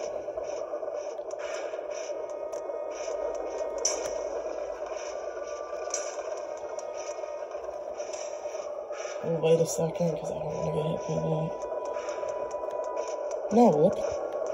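Soft game music plays from a handheld console.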